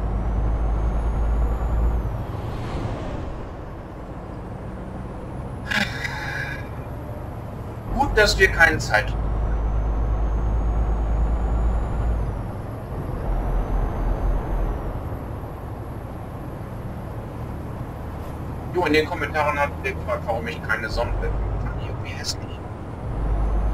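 A truck engine hums and rumbles steadily.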